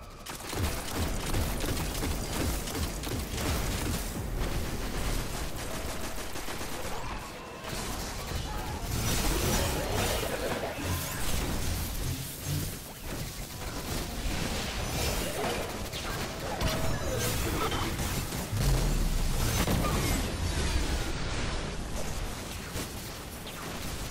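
Gunfire and explosions crackle in a video game.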